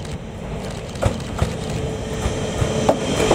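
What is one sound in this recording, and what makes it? Wheels clatter over the rails as a train passes close by.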